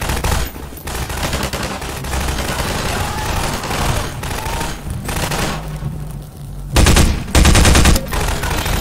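Fires roar and crackle from explosions.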